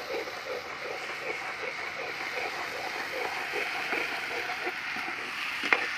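Hot oil sizzles steadily in a pan.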